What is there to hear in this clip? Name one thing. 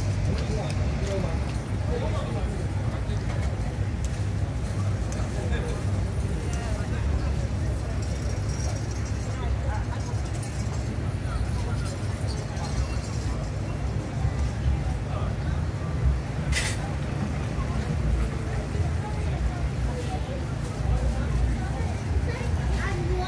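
Cars drive by on a wet road with a hiss of tyres.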